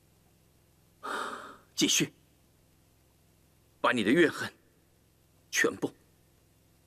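A young man speaks angrily in short bursts.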